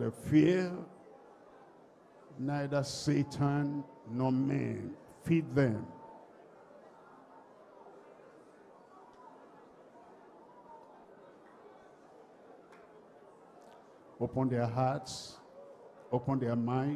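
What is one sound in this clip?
A man speaks loudly and with animation in short bursts, heard through a loudspeaker in an echoing hall.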